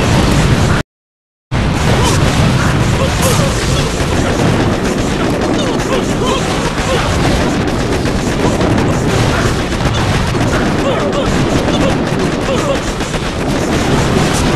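Explosions boom and crackle in quick succession.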